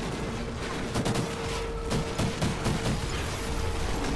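Rifle shots crack rapidly nearby.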